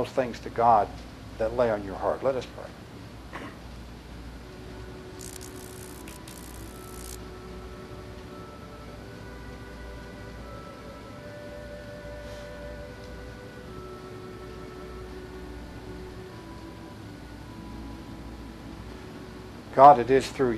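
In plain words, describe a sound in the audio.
A man speaks with feeling in a hall, heard through a microphone.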